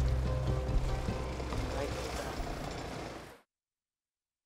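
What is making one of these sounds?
Water splashes against a moving boat's hull.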